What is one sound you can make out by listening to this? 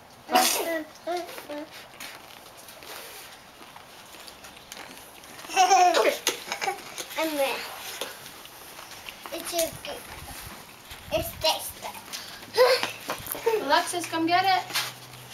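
A woman talks playfully to the children close by.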